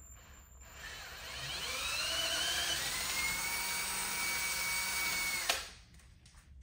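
A cordless drill whirs as it bores through metal.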